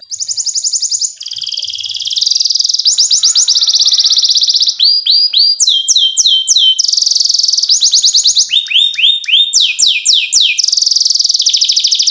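A canary sings up close in loud, fast trills and swooping whistles.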